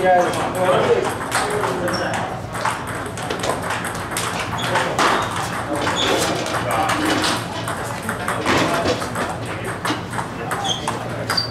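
Men talk in the background of an echoing room.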